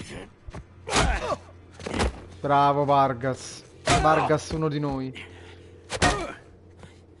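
Heavy punches thud.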